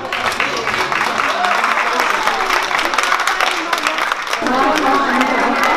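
A crowd of children chatters and shouts in a noisy, echoing hall.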